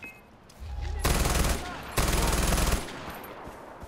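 A rifle fires loud, rapid bursts of shots.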